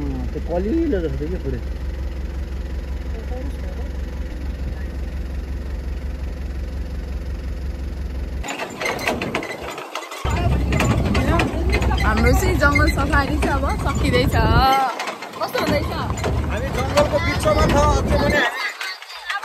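An engine rumbles steadily.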